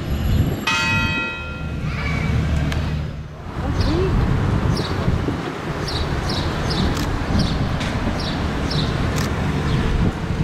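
Flags flap in a light breeze outdoors.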